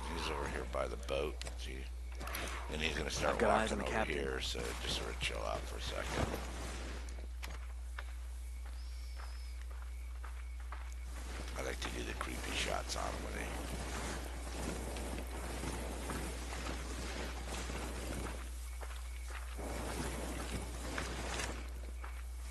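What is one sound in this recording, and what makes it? Footsteps rustle through tall grass and bushes.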